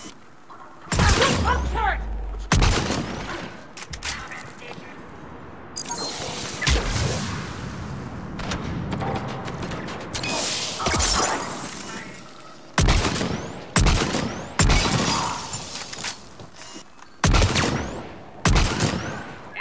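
Loud gunshots fire and echo.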